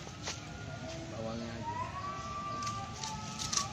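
A fish flaps on dry leaves.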